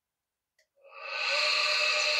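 A bench grinder switches on and starts up with a loud whine.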